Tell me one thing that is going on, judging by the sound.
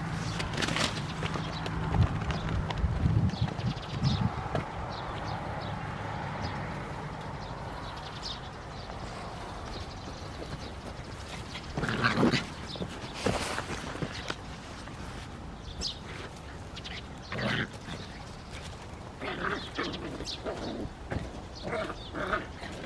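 Puppies scamper and scuffle over soft dirt.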